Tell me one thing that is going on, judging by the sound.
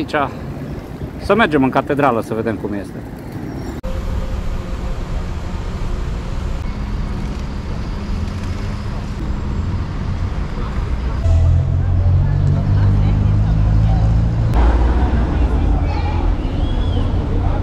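City traffic hums in the distance.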